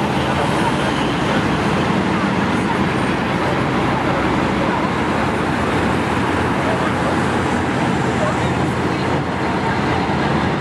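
Heavy eight-wheeled diesel military trucks rumble past in a column on asphalt.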